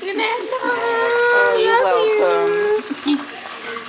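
An elderly woman sings out happily close by.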